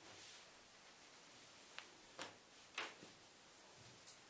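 Fabric rustles softly as hands smooth it out.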